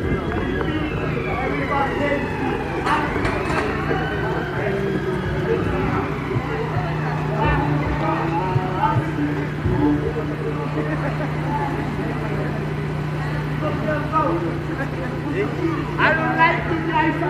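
Several people talk nearby outdoors.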